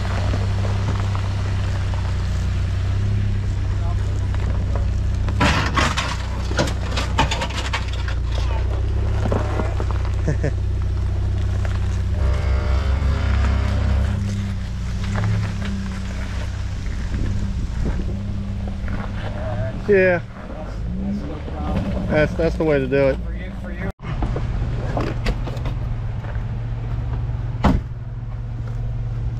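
An engine idles and rumbles low and steadily.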